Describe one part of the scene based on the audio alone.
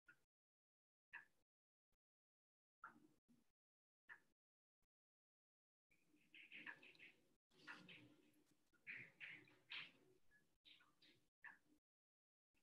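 A young woman speaks calmly over an online call, with pauses.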